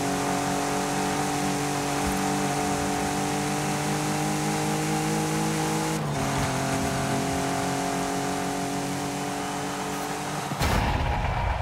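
A car engine roars steadily at high revs, shifting gear once.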